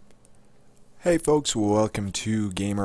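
A man speaks loudly and with animation, close to a microphone.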